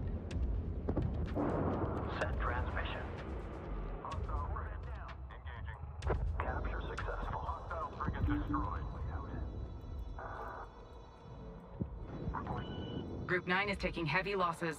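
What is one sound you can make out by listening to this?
Laser weapons fire in rapid bursts.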